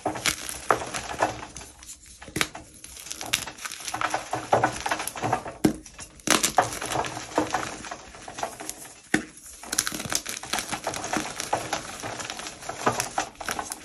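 Powdery bits patter onto a wire rack.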